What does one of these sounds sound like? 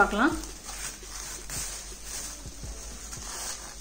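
Plastic wrap crinkles as it is pulled off.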